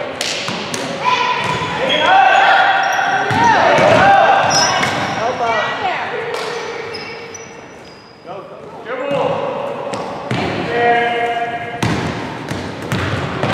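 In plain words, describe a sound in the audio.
Young girls shout and call out across an echoing hall.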